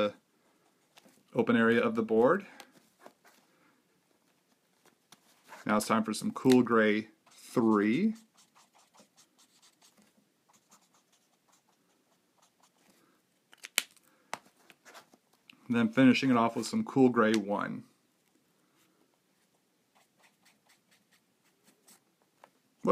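A marker squeaks and scratches softly on paper.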